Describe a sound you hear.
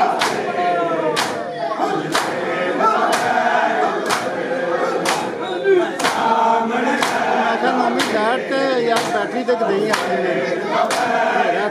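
A crowd of men chant loudly together in a room that echoes.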